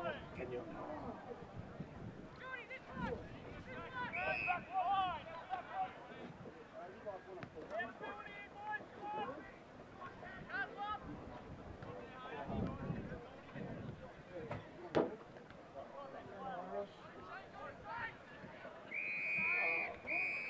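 A crowd of spectators calls out and cheers outdoors.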